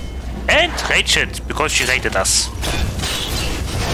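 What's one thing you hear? A sword clangs in a fight.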